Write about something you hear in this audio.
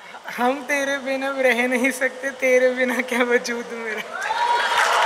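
A young man speaks in a drawn-out, sing-song voice through a microphone.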